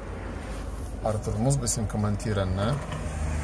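A man speaks close by in a casual tone.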